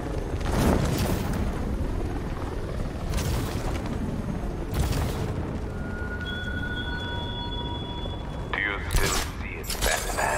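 A cloth cape flaps and snaps in the wind.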